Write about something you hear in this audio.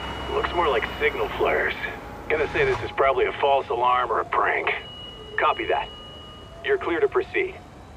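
Fire engines drive slowly down a street.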